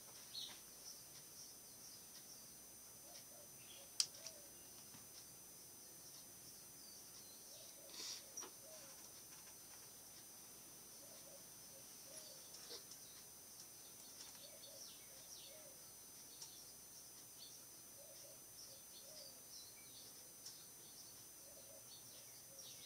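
A computer mouse clicks now and then, close by.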